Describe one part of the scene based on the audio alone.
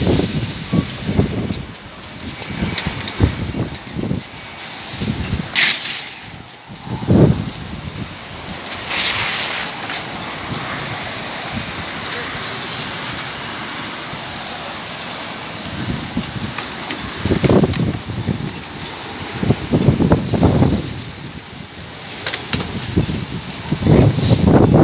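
Strong wind gusts loudly outdoors, buffeting the microphone.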